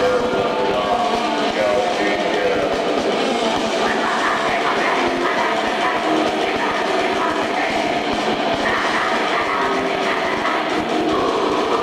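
A man sings harshly into a microphone.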